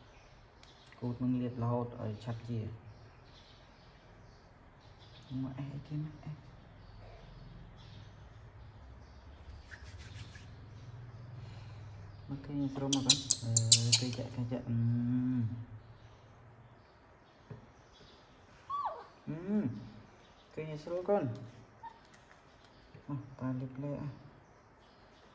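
A young man speaks softly up close, in short bursts.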